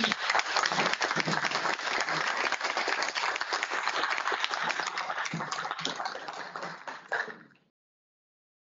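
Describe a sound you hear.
An audience applauds in a room, then the clapping fades.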